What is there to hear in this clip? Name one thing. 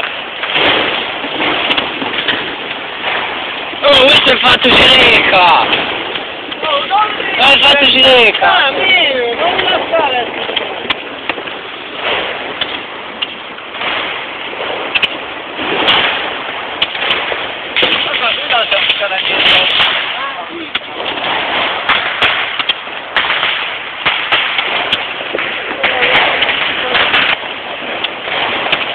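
Fireworks fizz and crackle close by.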